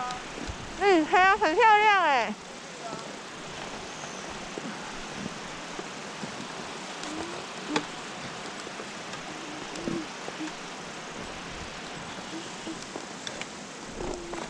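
Skis slide softly over snow.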